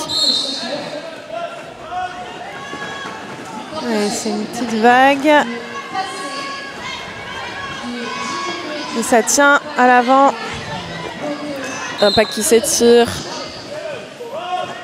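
Young women shout to each other in a large echoing hall.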